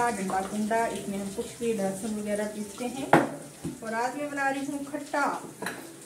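A wooden pestle knocks and grinds in a bowl.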